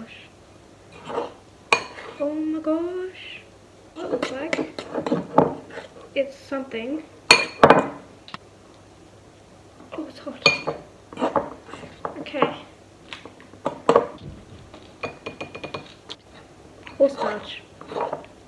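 A spoon scrapes and clinks against a ceramic bowl.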